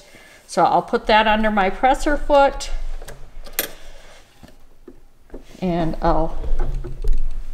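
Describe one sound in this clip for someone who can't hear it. A sewing machine hums and stitches steadily.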